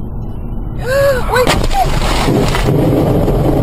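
A car crashes with a loud crunch and bang.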